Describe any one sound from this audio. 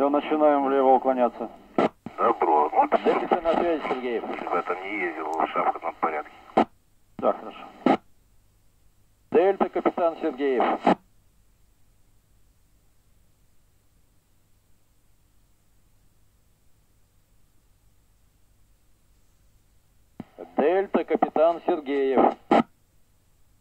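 A radio loudspeaker plays short bursts of transmission, each ending in a click.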